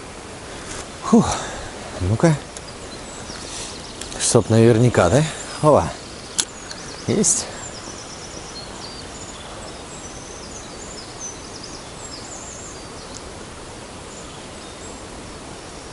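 A river flows steadily over stones.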